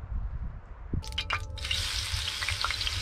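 Meat sizzles loudly in a hot frying pan.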